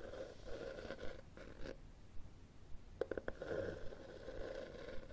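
Fingernails scratch on a cloth book cover close up.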